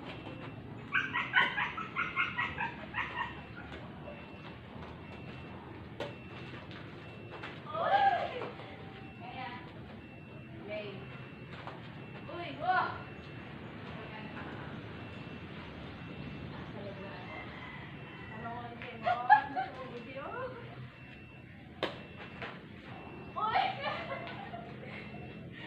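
Young girls call out and laugh.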